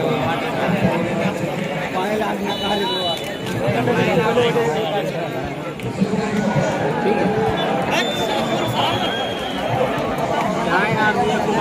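A large crowd of spectators cheers and shouts outdoors.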